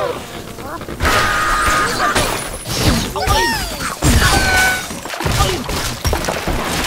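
Wooden and glass blocks crash, tumble and shatter.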